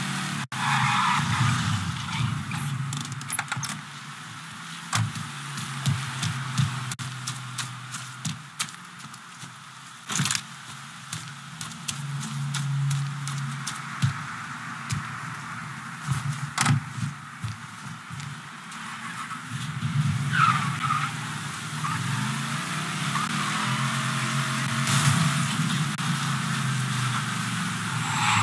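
A car engine idles and revs, then accelerates.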